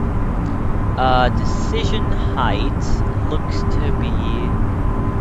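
A young man speaks briefly and casually into a microphone.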